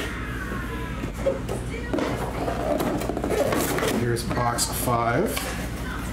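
A cardboard box lid scrapes and flaps open.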